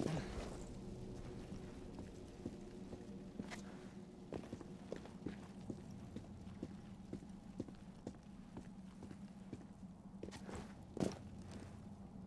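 Footsteps tap softly on a stone floor.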